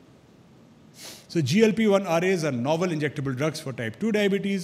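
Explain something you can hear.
A middle-aged man lectures calmly into a microphone.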